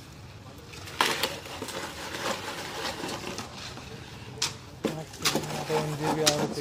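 Wet concrete slops and scrapes as it is poured into a column mould.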